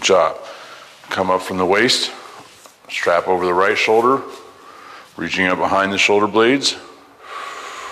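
A man speaks loudly in an echoing hallway.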